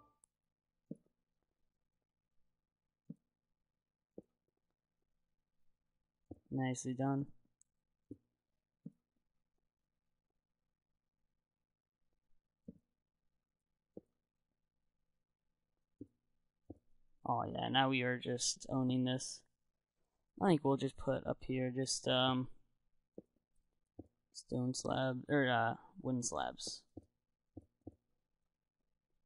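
Soft wooden knocks sound as blocks are placed one by one.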